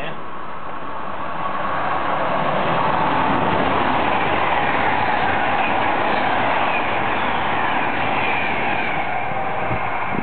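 A passenger train rumbles closer and roars past on the rails.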